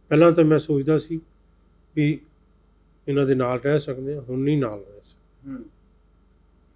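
An elderly man speaks slowly and emotionally into a close microphone.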